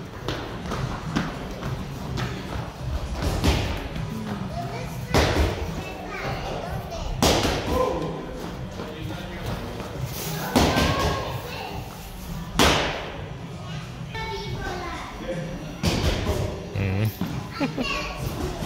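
Children's footsteps patter and thud on a padded floor.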